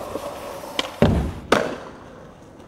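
A skateboard lands hard with a loud smack.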